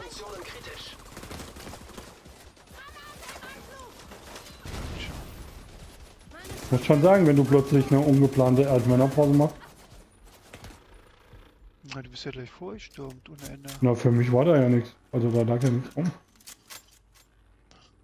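Gunfire cracks in short, rapid bursts.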